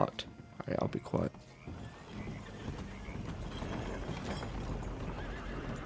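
Horse hooves clop on a wooden floor.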